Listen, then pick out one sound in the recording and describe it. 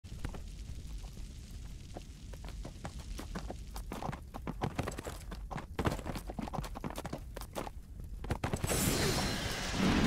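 Magic fire bursts crackle and whoosh.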